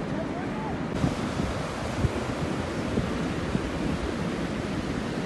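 Shallow seawater rushes and surges over the sand.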